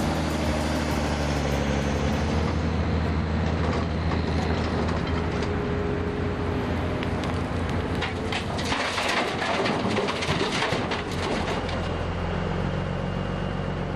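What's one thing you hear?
Heavy machinery engines drone and clatter.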